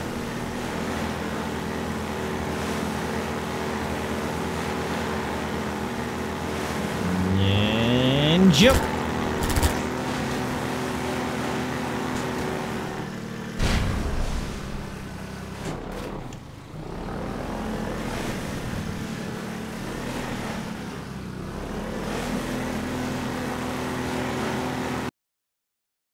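A boat engine drones steadily, revving up now and then.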